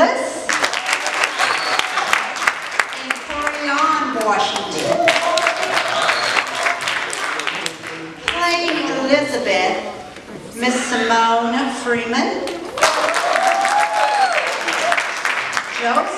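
Several people clap their hands in a quick rhythm.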